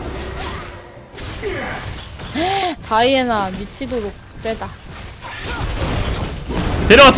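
Game spells whoosh and crackle during a fight.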